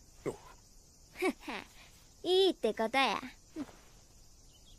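A boy answers cheerfully.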